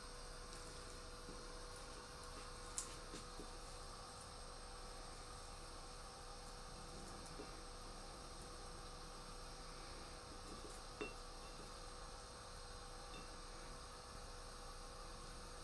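A knife slices through an onion with soft crunches.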